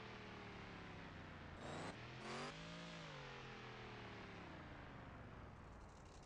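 A truck engine revs and rumbles.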